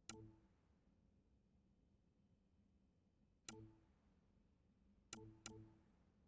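Short game menu clicks chime now and then.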